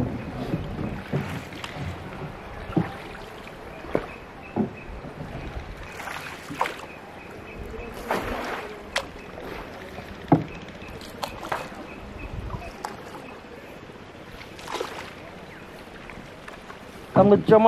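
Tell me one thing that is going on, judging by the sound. Water laps softly against a small boat's hull.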